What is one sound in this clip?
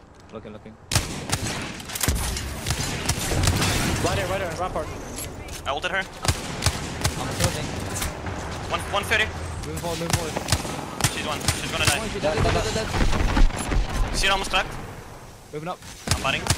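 Gunfire bursts in rapid volleys.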